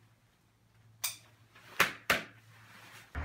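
A helmet strap buckle clicks.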